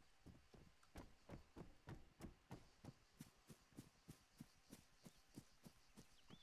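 Footsteps thud softly on a wooden floor.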